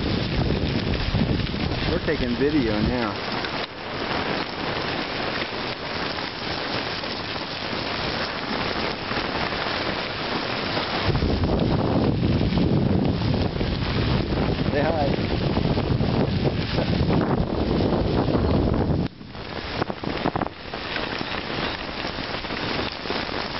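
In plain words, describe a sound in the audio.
Bicycle tyres crunch steadily over a gravel path.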